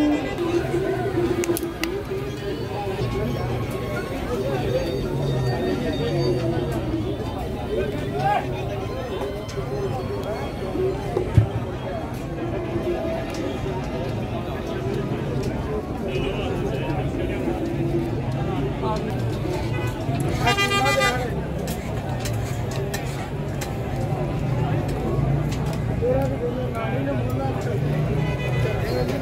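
A crowd of men chatter nearby in the open air.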